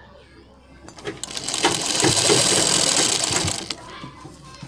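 A sewing machine rattles as it stitches.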